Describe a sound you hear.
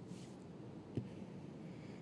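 A wiper arm knocks against the glass.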